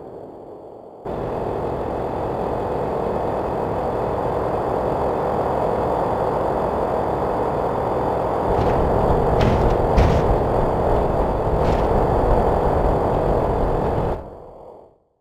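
Tyres rumble and roar on concrete.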